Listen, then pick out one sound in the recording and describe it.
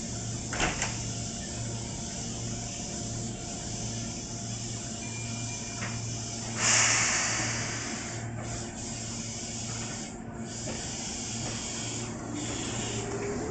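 An electric train hums while standing at a platform.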